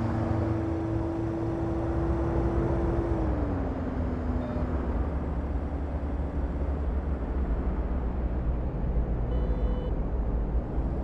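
A car engine hums steadily, then drops in pitch as the car slows.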